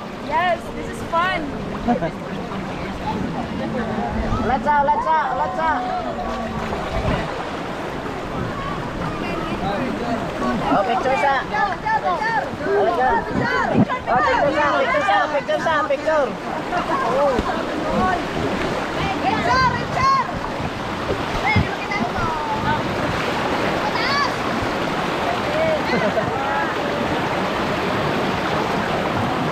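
River water rushes and splashes steadily outdoors.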